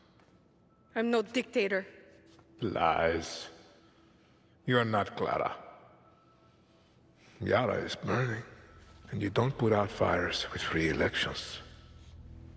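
A man speaks slowly and calmly.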